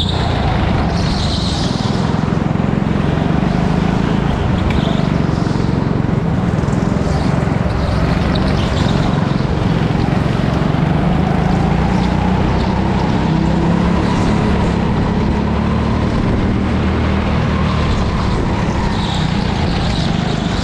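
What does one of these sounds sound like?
Tyres squeal on the track.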